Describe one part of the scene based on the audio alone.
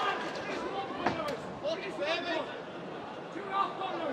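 Padded gloves thud as punches land.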